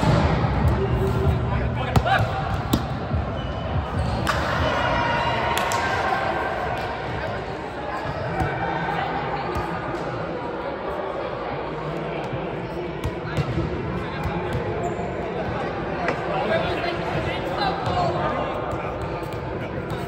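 Young women talk and chatter in a large echoing hall.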